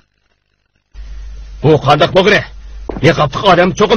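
A man speaks in a room.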